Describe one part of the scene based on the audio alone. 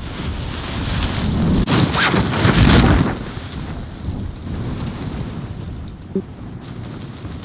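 Wind rushes loudly past during a fall.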